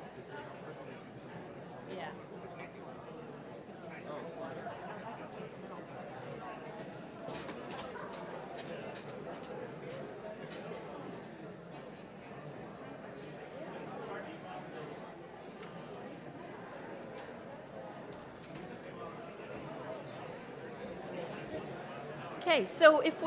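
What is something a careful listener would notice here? A crowd of men and women murmurs and chatters quietly in a large echoing hall.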